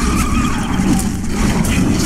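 A large beast growls.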